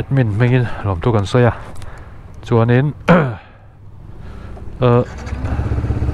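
A motorcycle engine revs in short, sharp bursts close by.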